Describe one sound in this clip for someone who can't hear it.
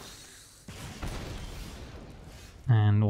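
A fiery magical blast bursts with a whoosh.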